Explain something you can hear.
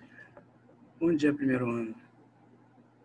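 A middle-aged man speaks briefly over an online call.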